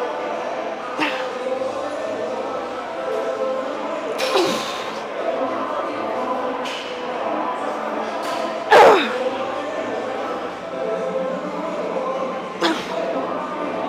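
Heavy weight plates clank as a loaded barbell is lowered and raised.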